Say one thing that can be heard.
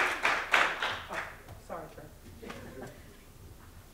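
A woman speaks briefly through a microphone in an echoing room.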